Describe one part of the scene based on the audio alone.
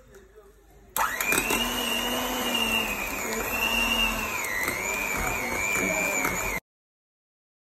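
An electric hand mixer whirs steadily.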